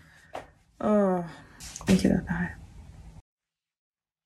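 A woman groans close by.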